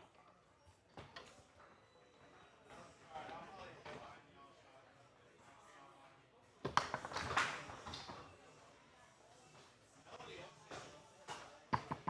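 A ball smacks hard against the walls of a foosball table.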